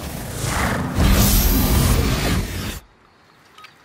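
A flash grenade bursts with a loud, ringing blast.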